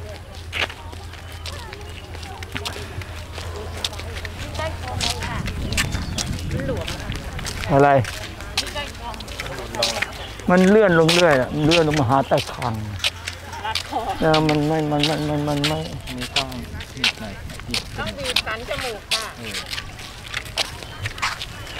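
Footsteps scuff on a paved road.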